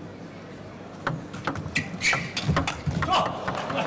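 A ball is hit back and forth, tapping on paddles and a table.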